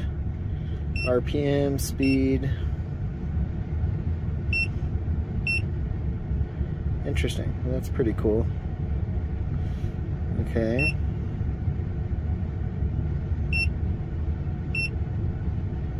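An electronic device gives short high beeps.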